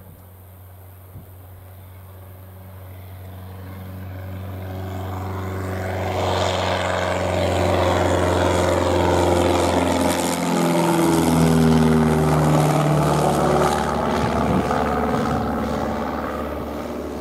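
A small propeller plane approaches, roars overhead with a falling pitch, and flies away.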